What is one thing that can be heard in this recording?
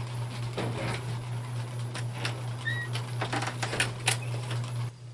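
A door opens and closes with a click.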